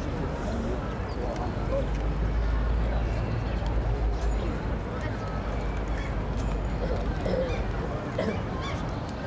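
Wind gusts against the microphone outdoors.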